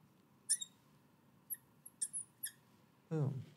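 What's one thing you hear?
A marker squeaks briefly on glass.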